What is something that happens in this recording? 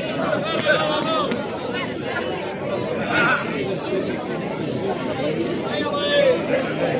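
A large crowd outdoors chatters and shouts excitedly.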